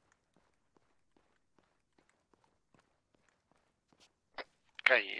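Footsteps run steadily over hard ground.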